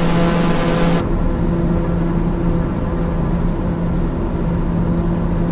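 A single-engine turboprop hums muffled from inside the cockpit.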